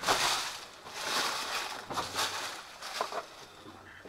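Boots crunch on loose stones and leaves.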